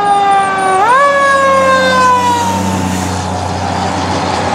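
A heavy engine rumbles as a fire truck passes close by.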